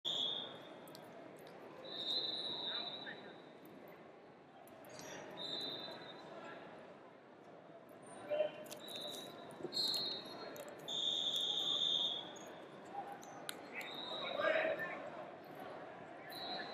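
A crowd of people murmurs in the distance.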